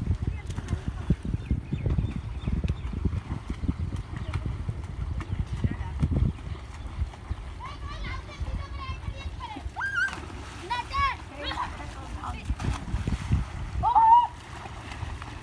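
Water splashes as swimmers move through a pond.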